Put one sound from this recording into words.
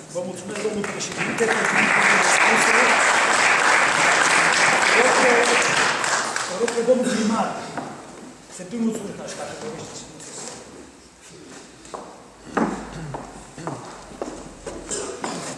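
A middle-aged man reads out loud through a microphone in an echoing hall.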